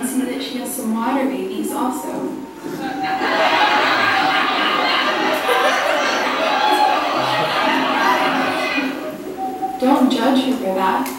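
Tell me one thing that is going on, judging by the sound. Sound plays from a small television.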